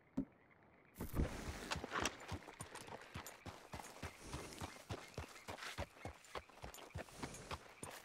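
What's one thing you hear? A horse's hooves clop steadily at a walk on a dirt trail.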